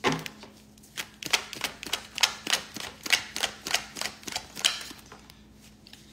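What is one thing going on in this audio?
Cards riffle and flick rapidly as a deck is shuffled.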